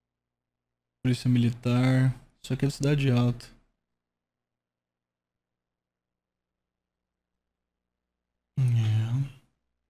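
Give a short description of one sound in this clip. A man talks calmly and close into a microphone, pausing between phrases.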